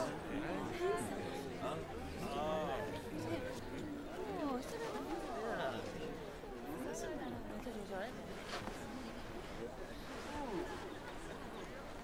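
A crowd of men and women murmurs and talks over one another nearby.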